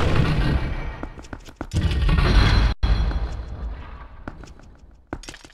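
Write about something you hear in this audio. A heavy stone gate rumbles and grinds open.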